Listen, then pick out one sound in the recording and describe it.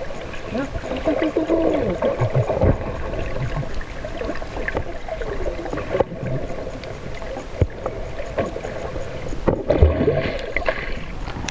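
Dolphins whistle and chirp underwater.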